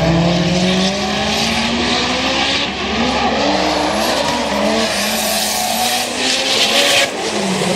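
Tyres screech and squeal on asphalt.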